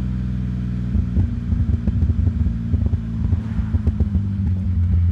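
A car engine burbles and pops as the car slows.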